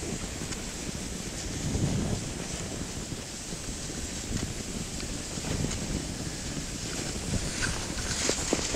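Wind rushes past a microphone outdoors.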